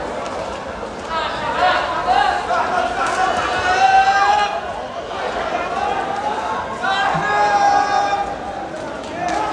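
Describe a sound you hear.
A crowd shouts and cheers outdoors.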